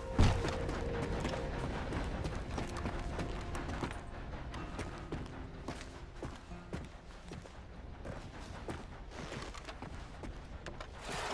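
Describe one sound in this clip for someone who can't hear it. Footsteps thud on creaking wooden boards.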